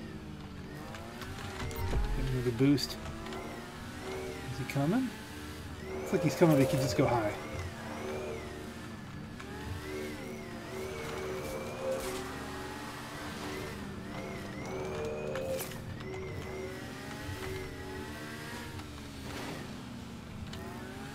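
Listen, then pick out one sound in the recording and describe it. A futuristic motorbike engine hums with a whine that rises and falls.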